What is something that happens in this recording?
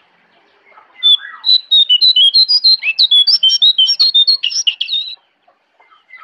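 A songbird sings a loud, rapid, high warbling song up close.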